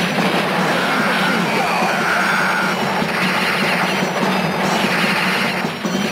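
Video game gunfire rattles rapidly.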